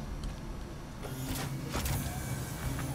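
A heavy metal door slides open with a hiss.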